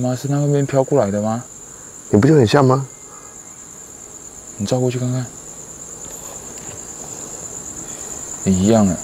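A young man talks quietly in short bursts close by.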